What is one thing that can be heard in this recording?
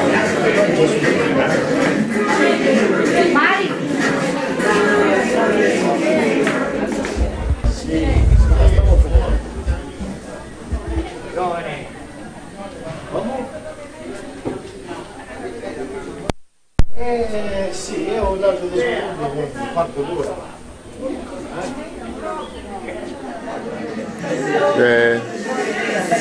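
Several women chat with animation close by.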